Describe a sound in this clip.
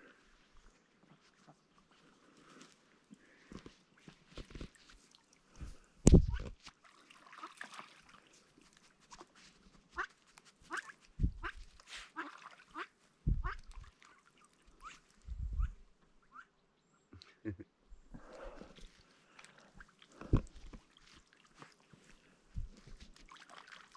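Ducks quack softly on the water nearby.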